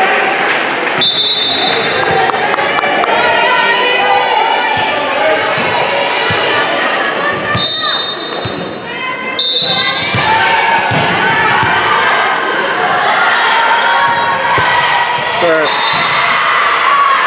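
A referee's whistle blows in short sharp blasts.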